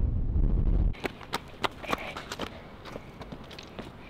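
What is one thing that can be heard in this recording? A child's footsteps crunch on loose stones.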